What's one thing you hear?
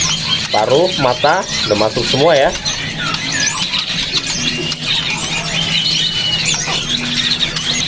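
A songbird sings loud, varied warbling whistles and chirps close by.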